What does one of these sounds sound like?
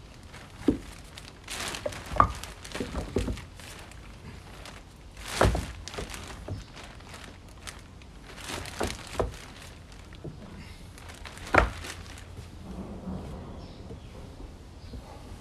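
Leaves rustle in a gusty breeze outdoors.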